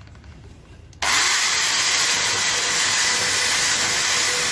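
A power drill whirs loudly as a wire brush scrubs metal.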